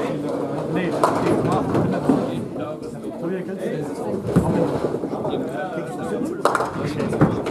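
Pins clatter as balls strike them.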